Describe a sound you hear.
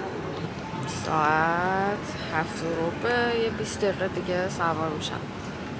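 A young woman speaks close to a microphone, in a lively, sing-song way.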